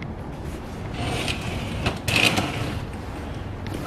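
A curtain swishes as it is pulled open.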